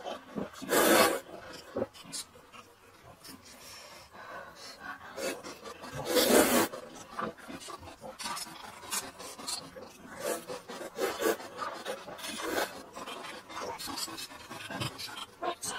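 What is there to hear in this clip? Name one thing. A young man chews noisily with his mouth full.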